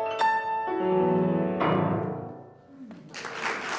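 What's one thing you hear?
A piano plays loud final chords that ring out.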